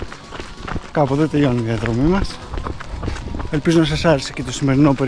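A man speaks breathlessly and close by while running.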